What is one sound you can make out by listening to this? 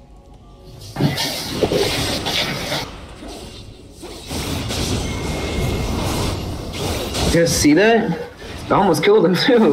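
Video game spells and weapon hits crash and whoosh in a fight.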